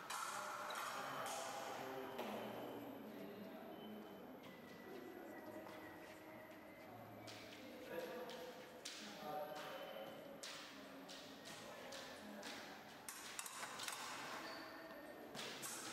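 Fencers' feet thud and shuffle on the floor in an echoing hall.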